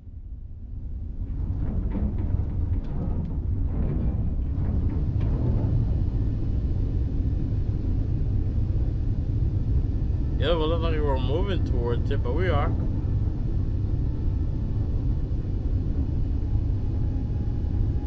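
A spacecraft engine hums with a deep, steady rumble.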